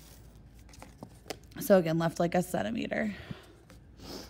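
Cardboard rustles and scrapes on a hard surface.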